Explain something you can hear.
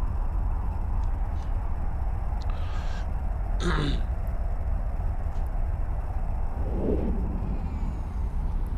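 A spaceship's engine rumbles with a deep, steady drone.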